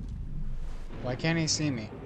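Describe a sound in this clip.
A young boy speaks close to a microphone.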